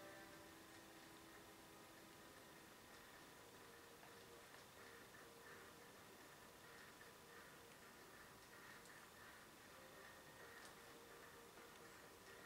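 Quiet game sounds play faintly from a television speaker.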